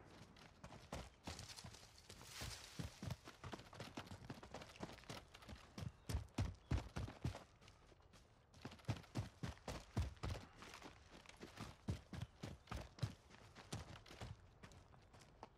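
Footsteps thud quickly over the ground.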